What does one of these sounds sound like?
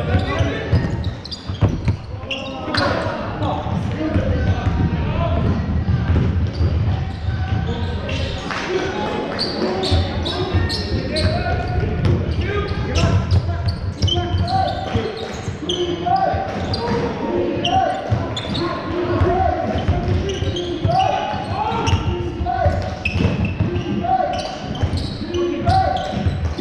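Young men shout and call out across the court.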